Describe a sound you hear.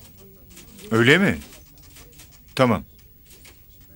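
A man speaks briefly into a telephone.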